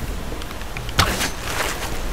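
A rope arrow fires with a sharp thud.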